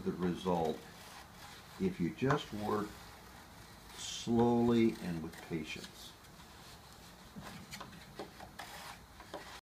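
A light wooden frame taps and rattles softly as hands handle it.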